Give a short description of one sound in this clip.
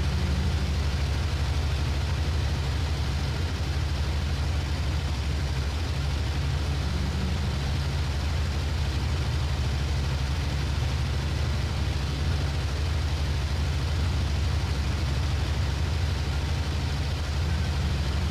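A propeller engine drones steadily with a deep hum.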